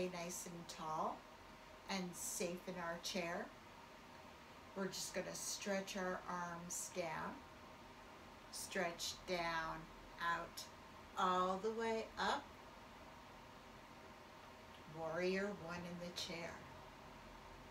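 An older woman speaks calmly and clearly, close by.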